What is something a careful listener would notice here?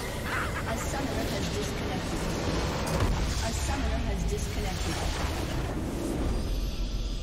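A large stone structure explodes with a loud rumbling crash.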